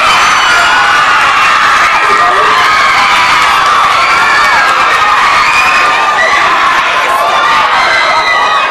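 A crowd of young people chatters and calls out in an echoing hall.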